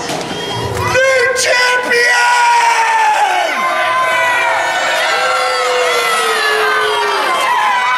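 A crowd cheers and howls loudly.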